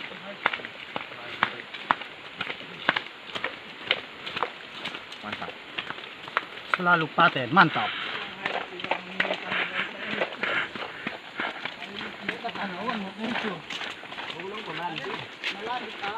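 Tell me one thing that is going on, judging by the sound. Footsteps tap on stone steps outdoors.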